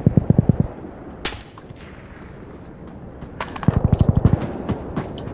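A rifle fires in short, rapid bursts nearby.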